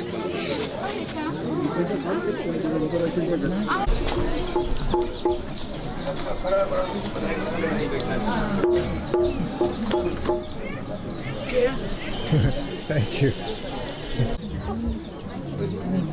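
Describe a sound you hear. A woman sings into a microphone over a loudspeaker.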